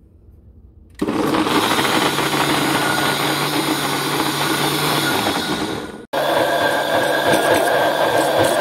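A blender whirs loudly, chopping and blending.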